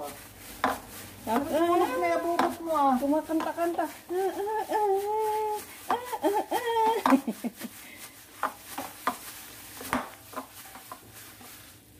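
A soft, wet mixture squelches as it is kneaded.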